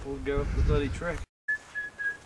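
An elderly man speaks briefly close by, outdoors.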